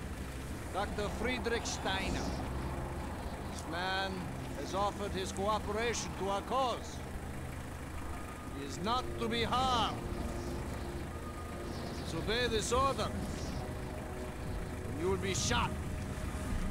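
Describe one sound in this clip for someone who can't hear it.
A man speaks firmly, giving orders.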